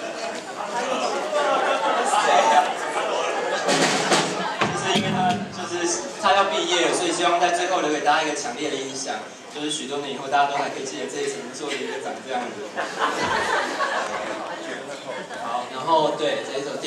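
A young man sings into a microphone over loudspeakers.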